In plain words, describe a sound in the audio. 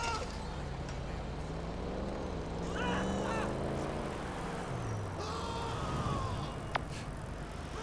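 A bicycle rolls along a paved road.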